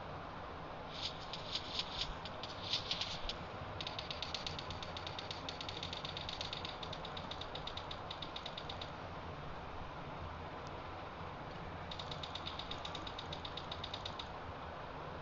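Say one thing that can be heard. Footsteps patter quickly as a figure runs.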